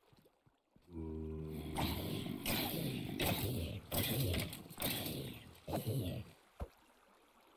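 Creatures groan and grunt as they are hit.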